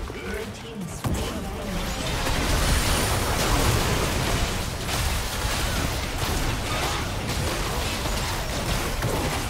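Game spell effects and fighting sounds clash and crackle, growing louder.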